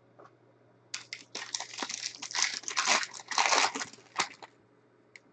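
A plastic wrapper crinkles and tears as a pack is opened.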